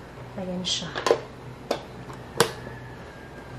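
A plastic lid snaps shut with a click.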